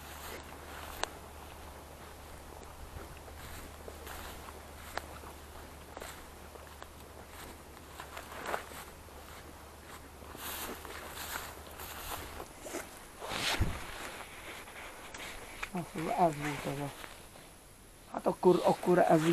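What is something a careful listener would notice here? Wind rustles through tall grass outdoors.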